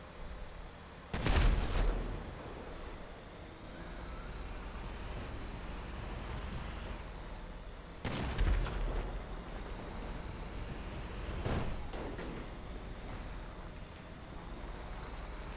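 A tank engine rumbles steadily as the tank rolls along.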